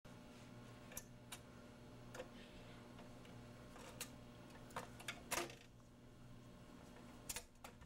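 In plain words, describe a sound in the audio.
A record changer's mechanism clicks and clunks.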